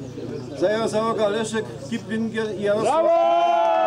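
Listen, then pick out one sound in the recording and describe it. An older man speaks in an announcing tone outdoors.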